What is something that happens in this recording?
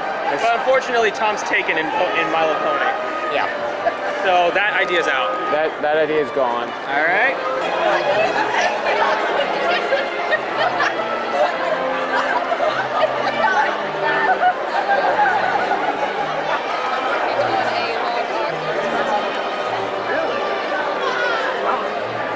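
A crowd chatters loudly in a large echoing hall.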